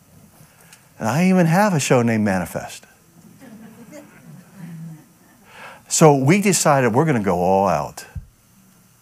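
A middle-aged man speaks loudly and with animation, in short bursts.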